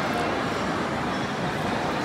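A drink pours into a small glass.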